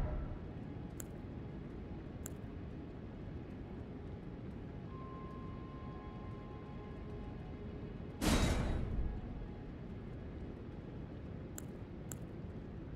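Short menu clicks sound as selections change.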